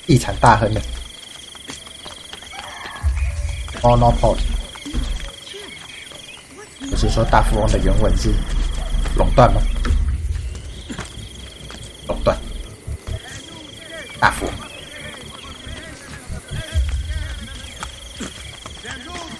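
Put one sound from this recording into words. Footsteps thud and scrape on stone as a figure runs and climbs across rooftops.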